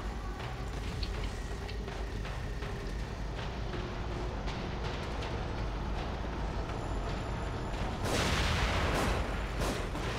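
A creature growls and snarls.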